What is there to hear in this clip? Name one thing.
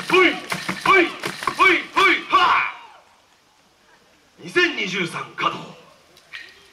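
A group of young dancers shout together in rhythmic bursts.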